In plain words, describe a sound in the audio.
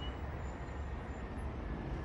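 Pigeons flutter and coo.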